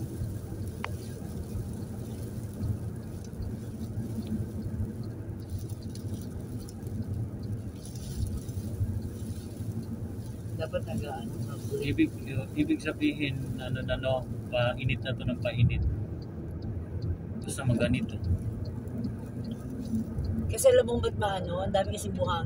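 Strong wind gusts and roars around the car.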